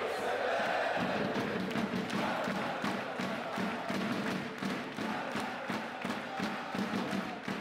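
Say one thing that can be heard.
A crowd claps rhythmically.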